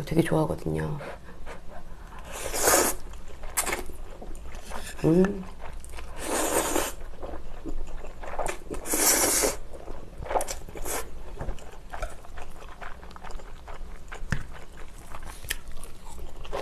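A young woman chews food with soft wet clicks.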